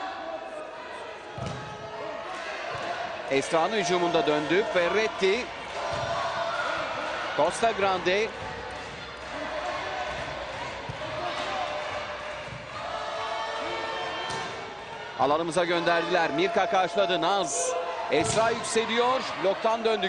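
A volleyball thuds as it is struck.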